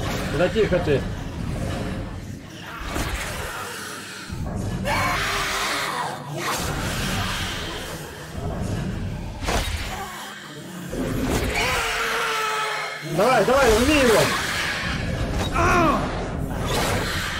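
A ghostly wind whooshes and swirls.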